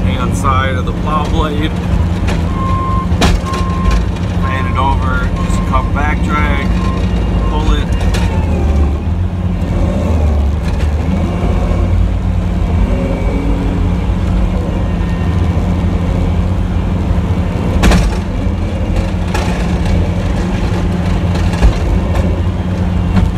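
A snowplow blade scrapes and pushes snow across the road.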